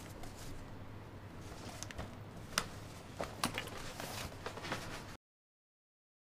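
Paper rustles and crinkles as it is unrolled.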